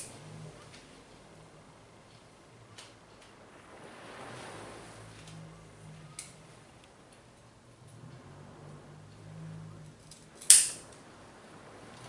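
Leaves rustle as a hand handles a small plant.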